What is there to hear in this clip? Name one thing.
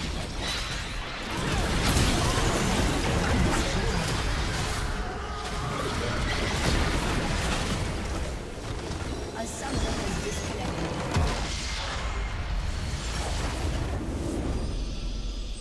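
Game spell effects crackle and boom in a busy battle.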